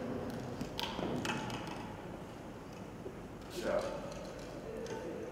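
Plastic bottles and stalks rustle and clatter as they are handled.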